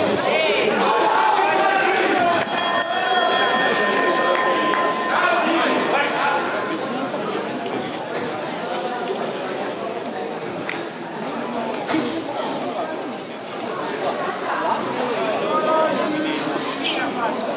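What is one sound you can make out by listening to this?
A crowd of men and women chatter and call out in a large echoing hall.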